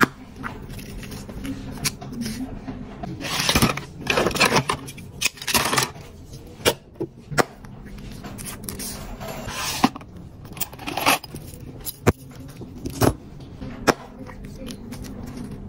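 Plastic capsules click and snap open and shut.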